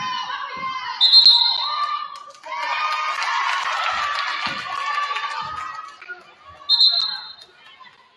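A referee blows a whistle in short sharp blasts.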